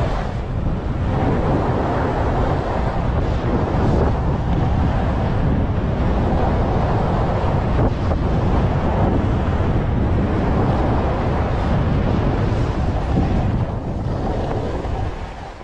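Wind rushes loudly past the skier.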